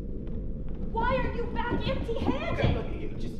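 Children shout and laugh excitedly.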